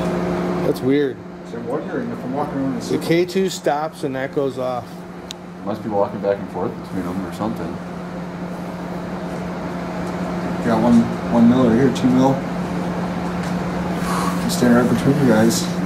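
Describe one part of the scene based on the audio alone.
Adult men and women talk nearby.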